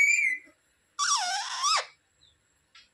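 A parrot gives a harsh, rasping squawk.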